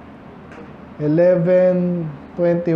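A man preaches loudly through a microphone.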